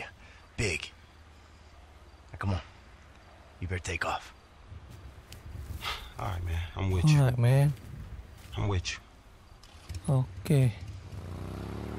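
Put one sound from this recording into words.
A man speaks in a low, tense voice, close by.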